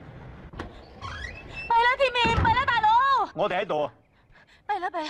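A young woman calls out loudly with excitement.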